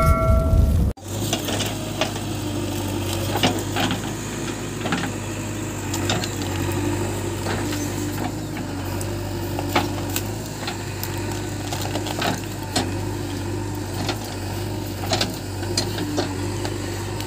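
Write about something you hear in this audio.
Roots and earth crack and thud as a digger bucket tears them loose.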